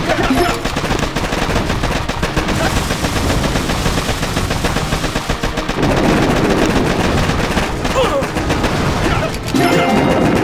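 Rapid gunfire crackles.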